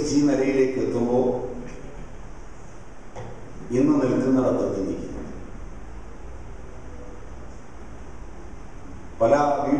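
A man speaks with feeling through a microphone and loudspeakers, in short bursts with pauses, in an echoing room.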